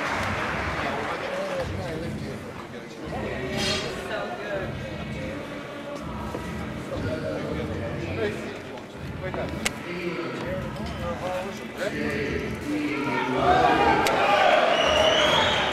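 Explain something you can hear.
Men talk nearby over a noisy crowd.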